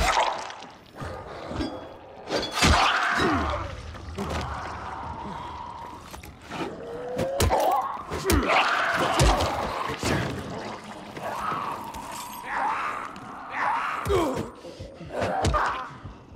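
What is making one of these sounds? A blunt weapon thuds into a body.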